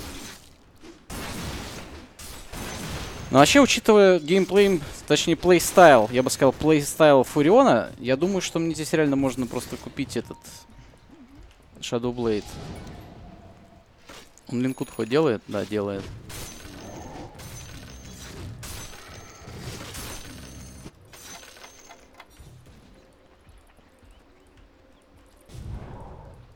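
Fighting sounds from a video game clash and crackle.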